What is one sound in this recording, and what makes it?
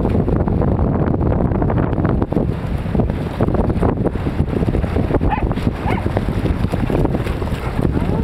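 Several dogs splash and run through shallow seawater.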